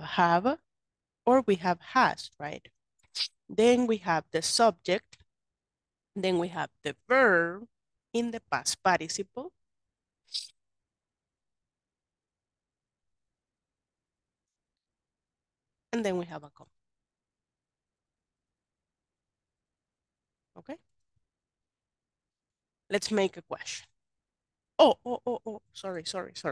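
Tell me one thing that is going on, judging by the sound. A woman speaks calmly over an online call, explaining.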